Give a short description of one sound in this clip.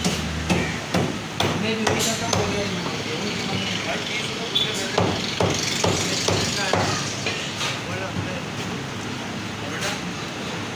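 A cleaver chops meat with sharp thuds on a wooden block.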